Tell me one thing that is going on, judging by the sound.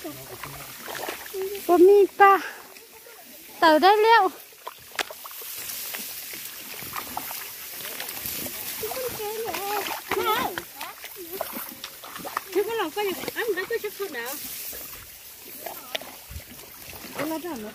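Tall grass rustles and swishes as people push through it.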